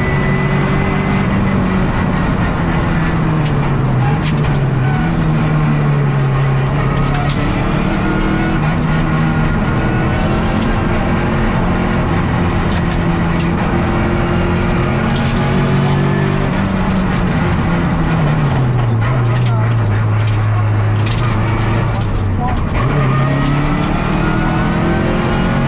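Tyres rumble and crunch over a rough road.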